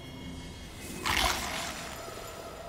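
A bright, shimmering whoosh swells up and then fades.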